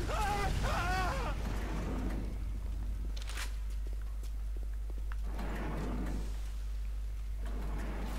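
Flames whoosh and crackle.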